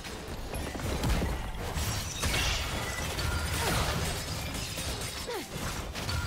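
Magic spells whoosh and crackle as game figures fight.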